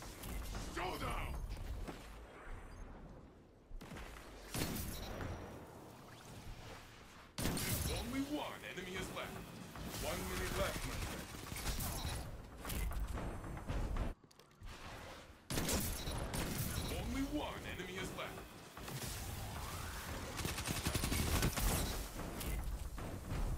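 Rifle shots crack in bursts.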